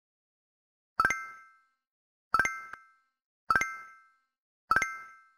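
Short plinking tones sound one after another as letters are picked.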